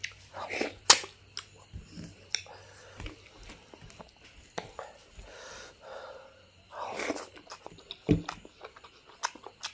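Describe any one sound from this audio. A woman chews and smacks her lips loudly close by.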